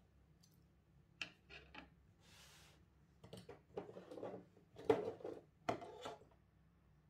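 Small parts clatter onto a desk.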